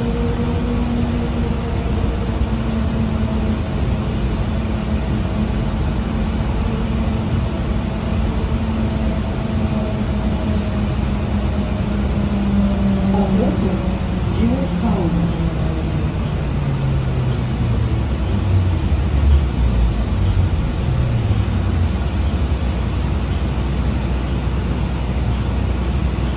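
Tyres rumble on the road beneath a moving bus.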